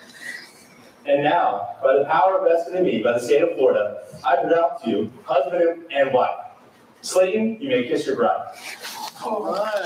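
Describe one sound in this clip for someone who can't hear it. A man speaks clearly and calmly.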